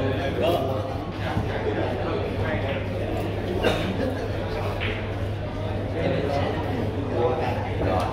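Billiard balls click against each other and thud off the cushions.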